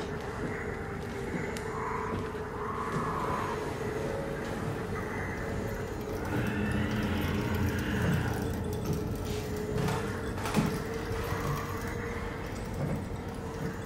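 Footsteps clang on a metal grating floor.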